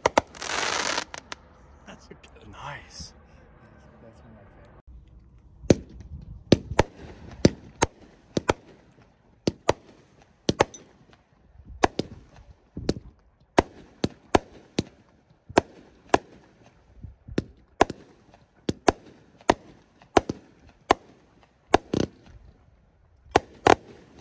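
Fireworks crackle and fizz overhead.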